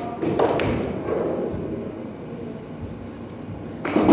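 Billiard balls clack together and roll across a table.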